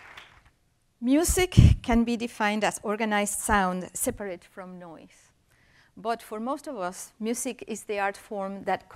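A middle-aged woman speaks clearly into a microphone.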